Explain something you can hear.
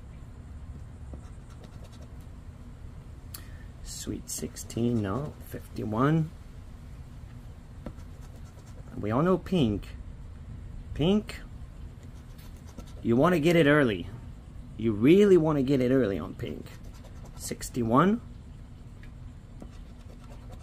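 A coin scratches across a scratch card.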